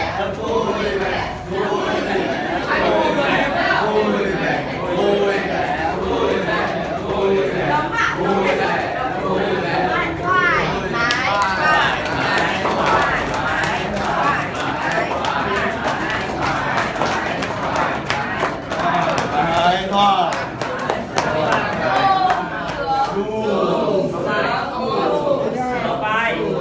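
Hands pat and tap on backs and shoulders.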